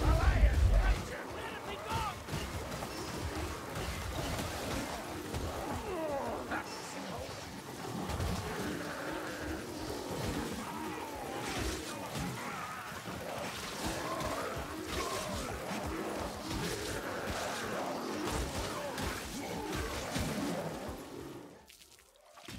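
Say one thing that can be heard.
Monsters growl and roar in a close, chaotic fight.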